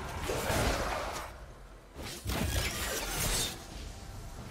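Video game spell effects whoosh and crackle in short bursts.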